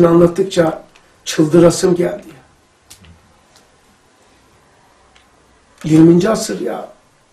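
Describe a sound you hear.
An elderly man speaks calmly and clearly into a nearby microphone, pausing between phrases.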